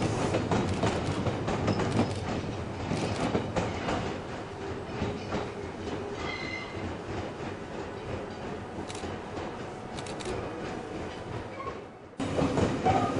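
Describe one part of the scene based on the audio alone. A train rumbles past on the tracks.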